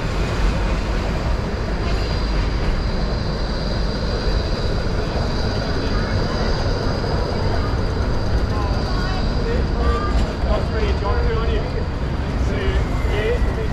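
City traffic hums steadily on a busy street.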